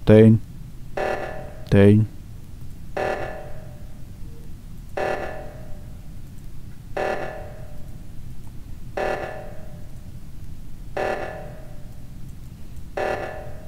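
An alarm blares in short bursts, about every two seconds.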